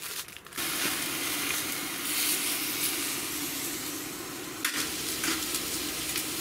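Food sizzles and hisses steadily in a hot pot.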